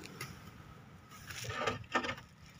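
A hand brushes against a rough corrugated roof sheet.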